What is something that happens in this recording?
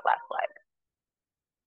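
A woman speaks a few calm words close by.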